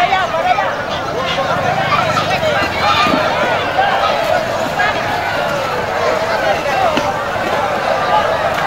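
Two water buffalo clash horns as they fight.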